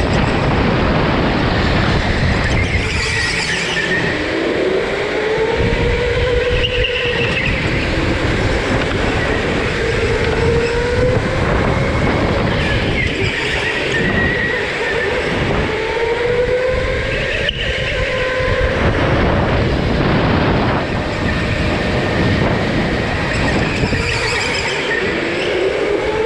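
Go-kart tyres rumble and hiss on a smooth floor.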